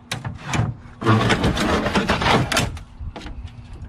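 Metal parts clank and rattle inside a computer case.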